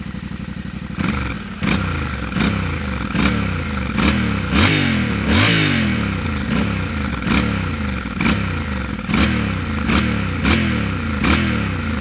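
A motorcycle engine revs up again and again.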